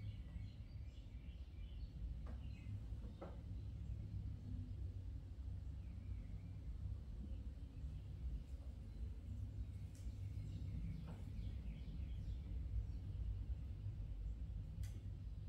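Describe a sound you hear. A potter's wheel hums steadily.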